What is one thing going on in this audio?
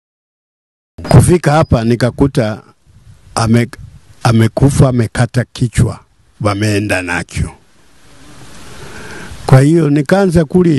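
An elderly man speaks close into a microphone.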